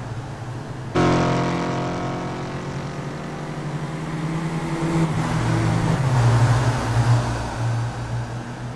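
Racing car engines roar and whine loudly as the cars speed past.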